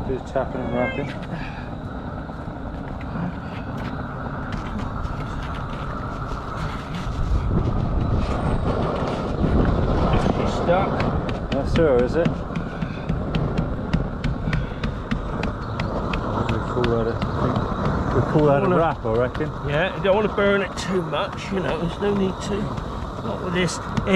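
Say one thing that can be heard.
Gloved hands rub and press on gritty roofing felt.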